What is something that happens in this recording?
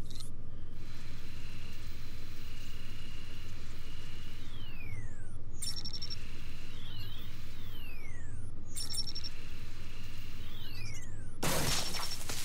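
An electronic device hums with steady tones and sweeping whistles.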